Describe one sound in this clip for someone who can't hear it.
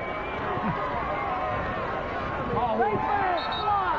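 Football players' pads crash together in a tackle.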